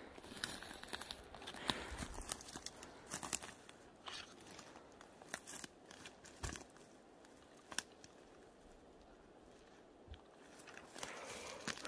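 Footsteps crunch on dry twigs and forest litter.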